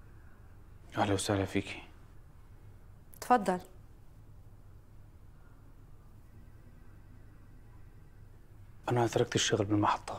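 A woman speaks sharply nearby.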